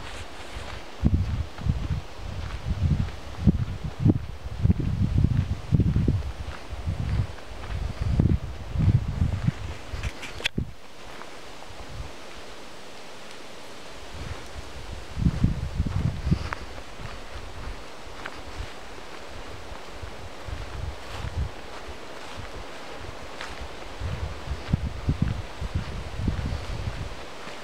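Wind gusts in bursts outdoors.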